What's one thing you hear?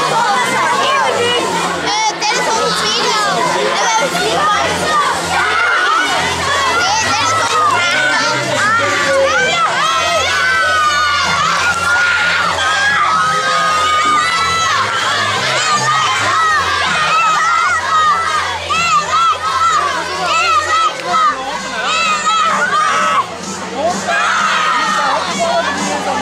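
A large crowd of children and adults chatters and shouts excitedly in a big echoing hall.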